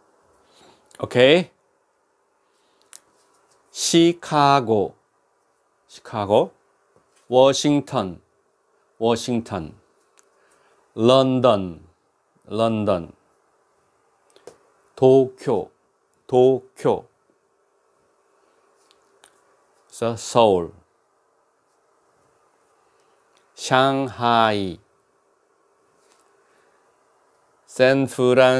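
An elderly man speaks clearly into a close microphone in short phrases with pauses.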